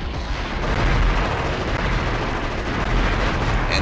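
A game weapon fires in rapid bursts.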